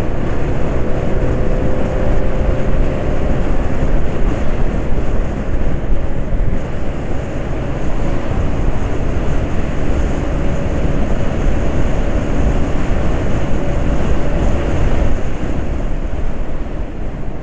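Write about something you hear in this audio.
A motor scooter engine hums steadily while riding.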